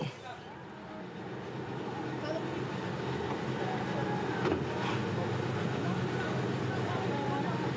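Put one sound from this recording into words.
A car engine idles nearby with a low, steady hum.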